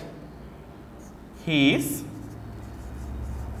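A marker squeaks faintly as it writes on a board.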